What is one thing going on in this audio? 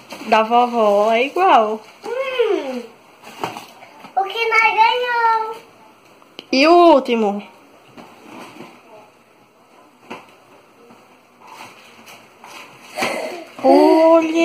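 Candy wrappers and cardboard crinkle and rustle.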